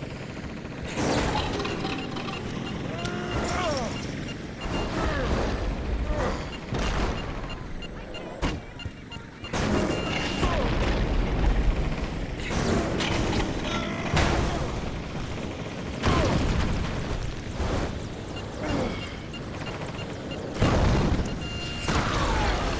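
Heavy impacts crash and thud.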